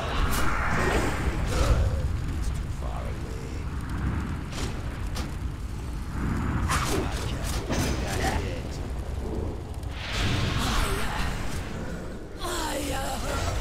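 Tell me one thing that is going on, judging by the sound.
Flames roar and crackle in a fiery battle.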